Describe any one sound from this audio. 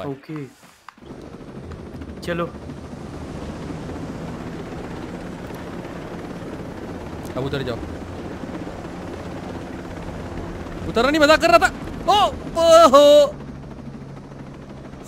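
A helicopter's rotor and engine drone steadily.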